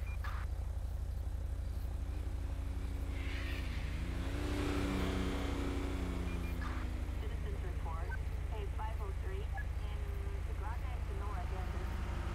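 A car engine idles with a steady low hum.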